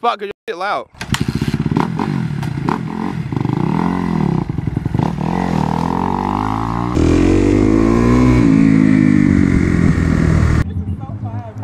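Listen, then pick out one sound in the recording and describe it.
A dirt bike engine revs loudly nearby.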